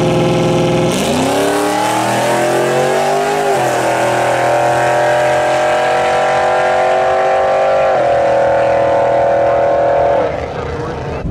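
A turbocharged V8 drag car launches and accelerates hard, shifting through gears.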